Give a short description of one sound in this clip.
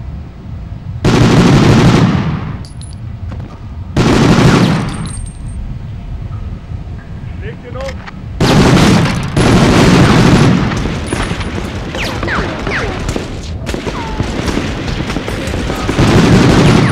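Gunfire bursts out loudly in rapid blasts and echoes.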